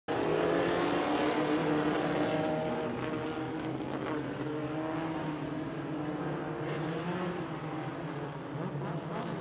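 Race car engines roar loudly as cars speed around a dirt track.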